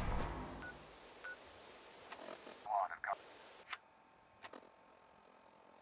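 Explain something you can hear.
Short electronic beeps and clicks sound as menu items are switched.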